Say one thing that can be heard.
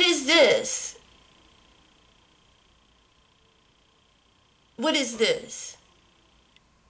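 A woman speaks close by, in short animated bursts.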